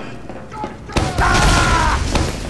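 An explosion bursts close by with a loud crash.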